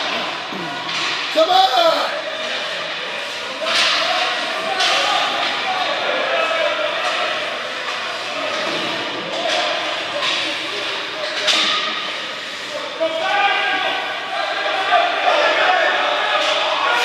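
Skates scrape and glide across ice.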